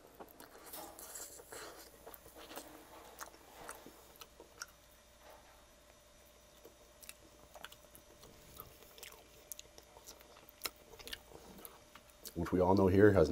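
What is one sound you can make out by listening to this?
A man crunches tortilla chips close to a microphone.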